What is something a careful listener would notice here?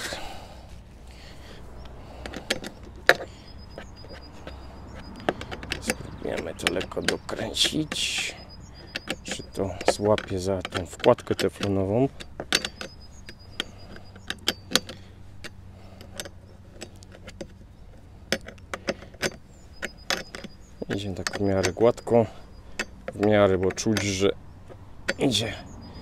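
Metal tools click and scrape against a bolt.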